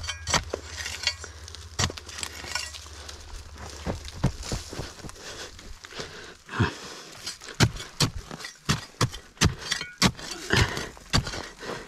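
Loose dirt and pebbles scatter and trickle.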